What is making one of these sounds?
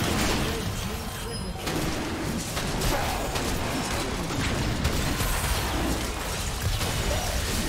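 Magic blasts and sword hits crash and burst in a fierce battle.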